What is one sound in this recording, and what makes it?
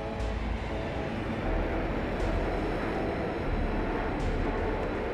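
A jet airliner's engines roar steadily nearby.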